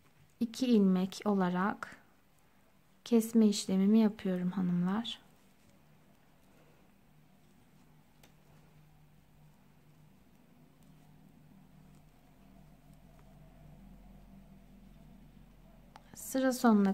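Metal knitting needles click softly against each other.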